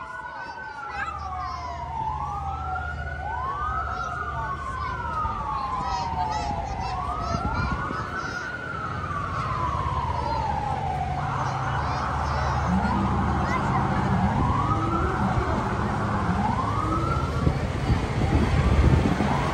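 A heavy truck engine rumbles closer.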